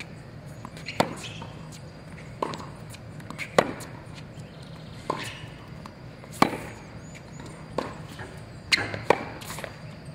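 A tennis racket strikes a ball on an outdoor hard court.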